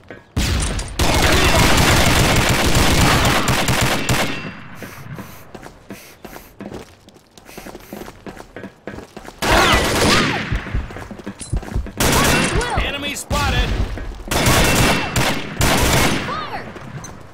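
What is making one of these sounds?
A stun grenade goes off with a loud bang, followed by a ringing hiss.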